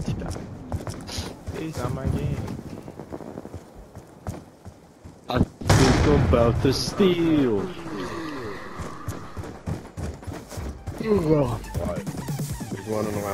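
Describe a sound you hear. Footsteps run quickly across a hard floor.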